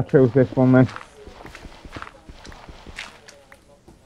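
Blocks of earth crunch and crumble as they are broken.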